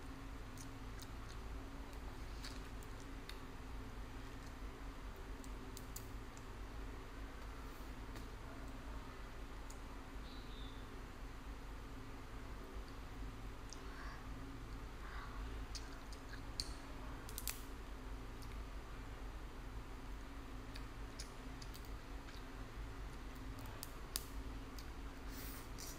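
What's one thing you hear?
Crab shells crack and snap close by as fingers pick them apart.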